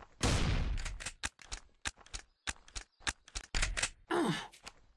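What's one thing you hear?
A shotgun's pump action clacks as shells are loaded.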